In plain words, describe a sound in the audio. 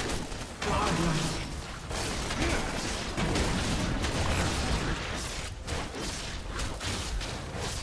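Magic spells crackle and clash in a fight.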